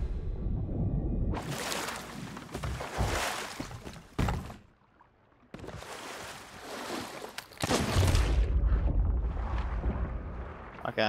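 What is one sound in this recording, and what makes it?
Ocean waves splash against a small wooden boat.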